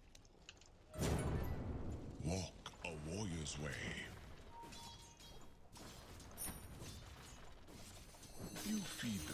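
Game spell effects and weapon hits clash and crackle in a fight.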